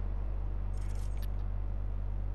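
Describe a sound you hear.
Short electronic clicks sound.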